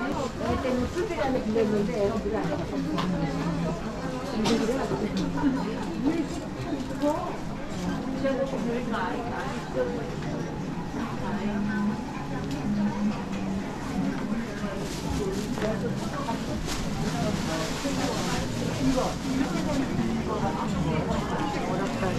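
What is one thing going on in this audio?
A crowd of shoppers murmurs and chatters throughout.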